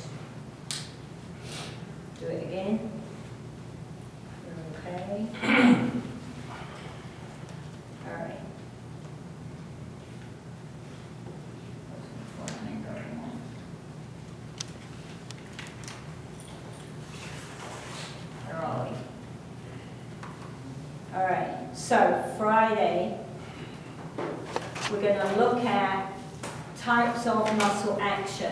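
A woman lectures calmly, heard from across an echoing room.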